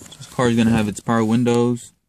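A switch clicks under a finger.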